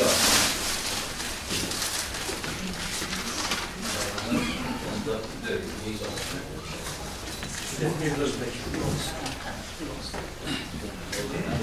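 Several men talk quietly at once.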